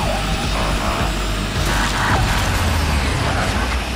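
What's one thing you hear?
Cars crash together with a bang.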